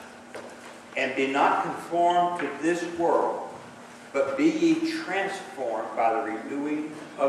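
A middle-aged man speaks calmly through a microphone in a large echoing hall.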